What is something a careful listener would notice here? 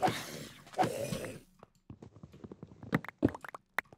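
Blocks crack and break with short crunching knocks.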